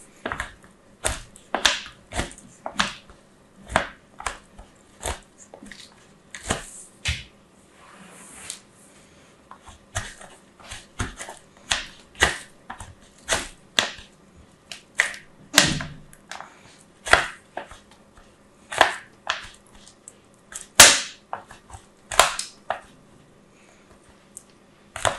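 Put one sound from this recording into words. Soap scrapes in short rasping strokes across a grater.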